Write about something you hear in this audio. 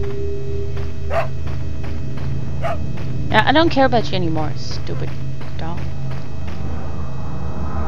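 Footsteps crunch on soft ground.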